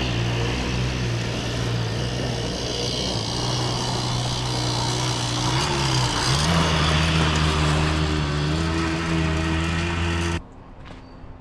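A small engine drones steadily, rising in pitch partway through.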